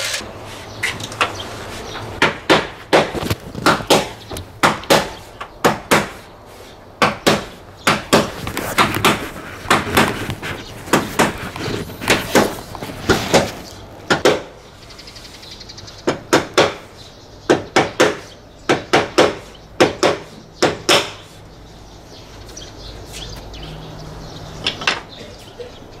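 Sharp taps knock on a door frame in quick bursts.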